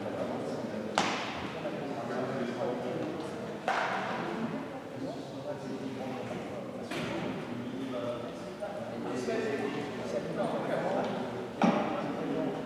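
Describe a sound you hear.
A volleyball smacks on hands and the floor, echoing.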